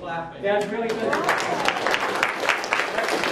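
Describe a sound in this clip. A man claps his hands.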